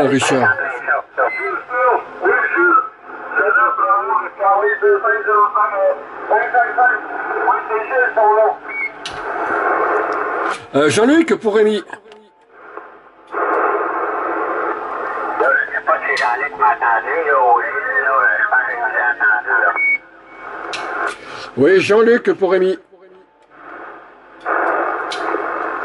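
A radio hisses with static.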